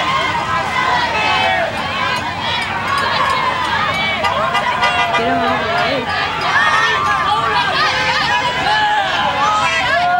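Young women shout and cheer together outdoors.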